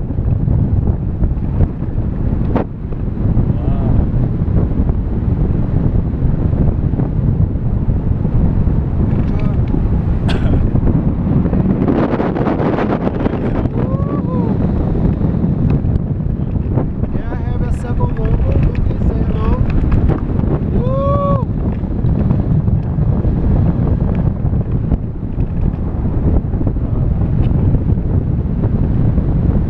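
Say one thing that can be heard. Strong wind rushes steadily past a microphone outdoors.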